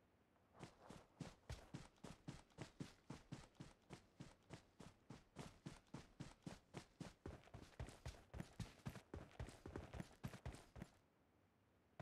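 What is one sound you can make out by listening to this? Quick running footsteps thud over grass and rocky ground.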